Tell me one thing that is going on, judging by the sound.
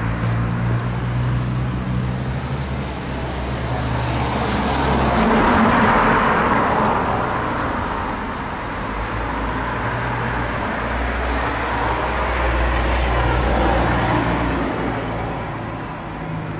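Cars drive past on a nearby street, swelling and fading.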